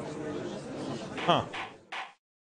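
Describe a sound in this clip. A gavel bangs once.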